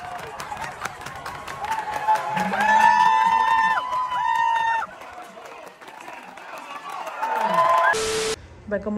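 A crowd cheers in a large open stadium.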